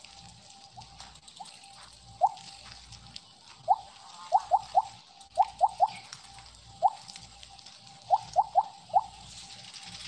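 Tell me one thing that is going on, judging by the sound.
Short bright game chimes pop again and again.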